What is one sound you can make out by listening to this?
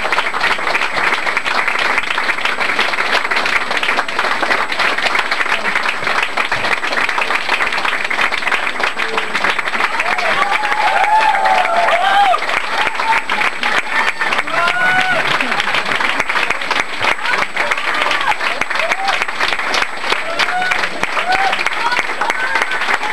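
A loud crowd cheers and chatters.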